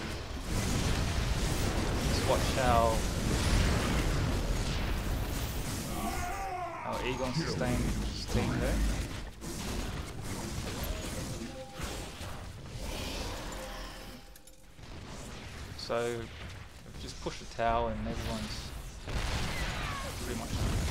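Sci-fi weapons zap and blast in a busy battle.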